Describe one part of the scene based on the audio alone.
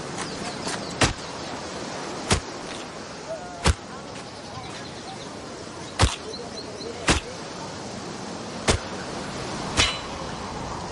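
A machete chops sharply into a coconut several times.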